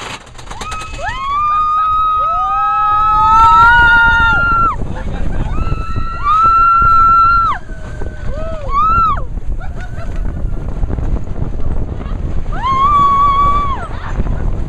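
A young woman screams loudly nearby.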